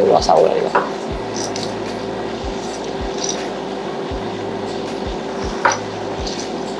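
A spoon stirs and clinks against ice in a glass.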